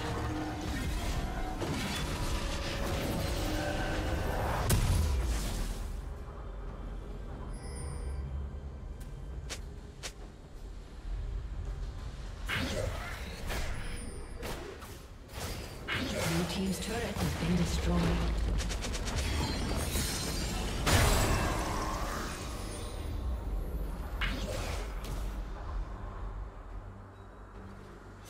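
Magic blasts and sword strikes clash and crackle in a fast fight.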